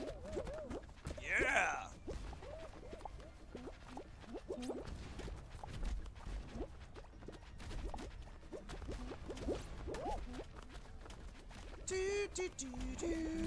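Playful cartoon sound effects squeak and boing.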